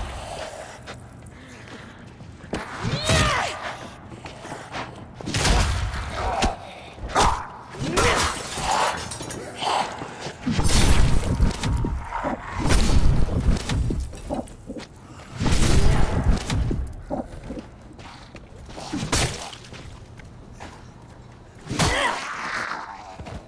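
Zombies groan and snarl.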